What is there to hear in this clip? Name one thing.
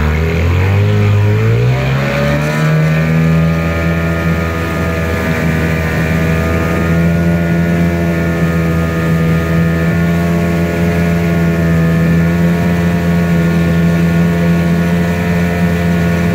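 Water splashes and churns behind a moving boat.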